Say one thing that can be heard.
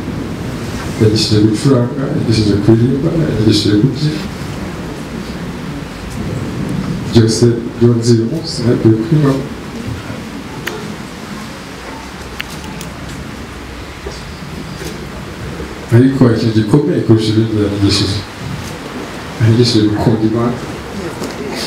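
A man speaks through a microphone over loudspeakers in short, forceful phrases with pauses.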